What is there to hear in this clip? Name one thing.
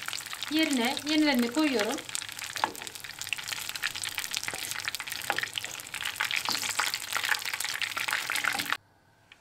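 Metal tongs clink against a frying pan.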